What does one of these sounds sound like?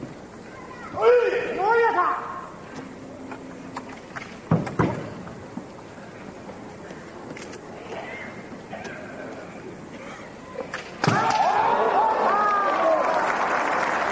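Older male kendo fencers let out long, sharp battle shouts in a large hall.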